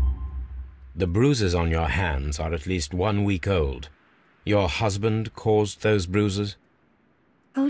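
A man speaks calmly and clearly up close.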